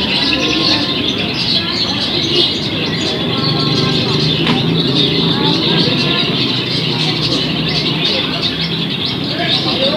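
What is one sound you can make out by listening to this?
Men talk and call out in the background, outdoors.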